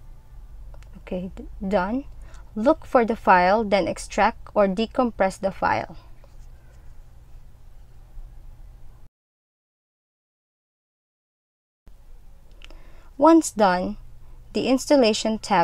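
A young woman speaks calmly, close to a microphone.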